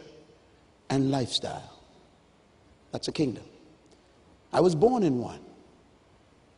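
A man preaches with emphasis through a microphone in a large echoing hall, in short bursts with pauses.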